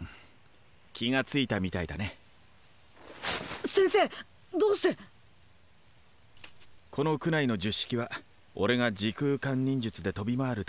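A man speaks calmly and warmly.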